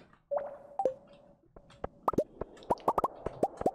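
Small items pop with short rising blips as they are picked up.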